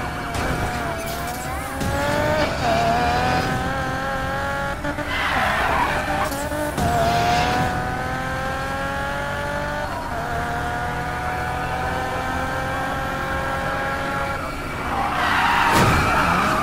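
A car engine revs high and climbs through the gears.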